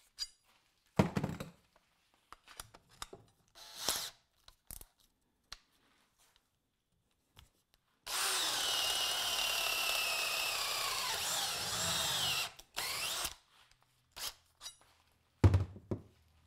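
A drill bit clicks and rattles as it is pulled out of wood.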